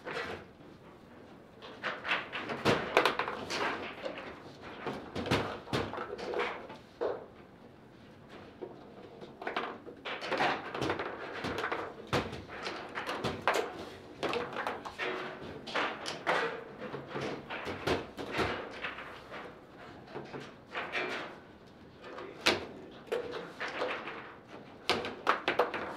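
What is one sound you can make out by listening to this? Metal rods rattle and thud as players spin and slide them.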